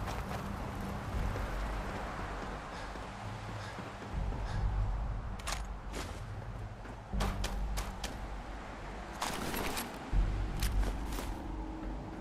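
Footsteps clang on metal stairs.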